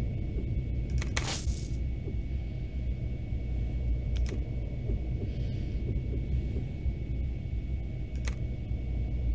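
Soft interface clicks sound as menu items are selected.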